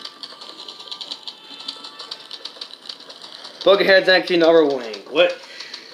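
A mobile game plays quick, repeated beeping sound effects through a small phone speaker.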